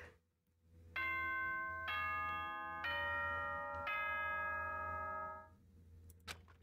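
A doorbell chimes in four ringing tones, one after another.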